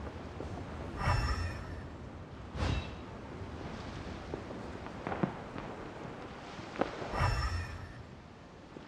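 A soft magical whoosh sounds several times.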